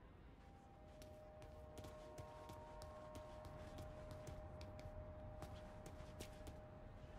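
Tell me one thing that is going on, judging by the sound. Footsteps patter quickly on pavement as someone runs.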